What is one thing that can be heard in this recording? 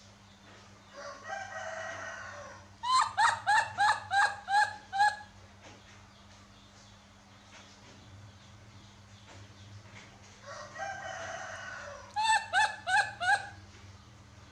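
A baby monkey squeaks and chirps in short, high calls, close by.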